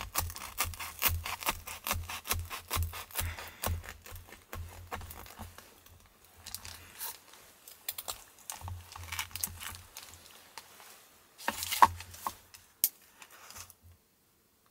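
A knife saws through crisp toasted bread with a crunching scrape.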